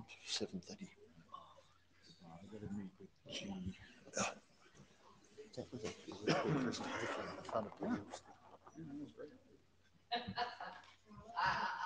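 People chat and murmur.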